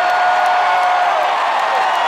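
A man shouts to the crowd through a microphone.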